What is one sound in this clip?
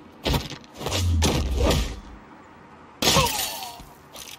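Punches land with heavy thuds in a fight.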